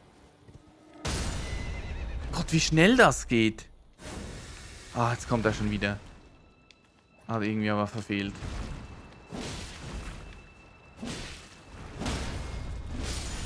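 Sword blows strike with heavy thuds.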